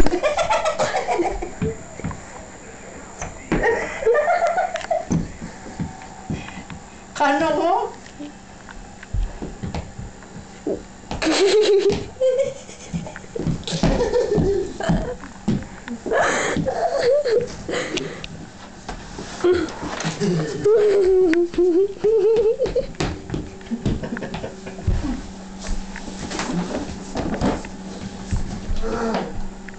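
A boy talks and laughs nearby.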